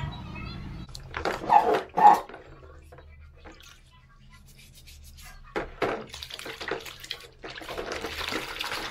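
Water sloshes and splashes as hands scrub small parts in a basin.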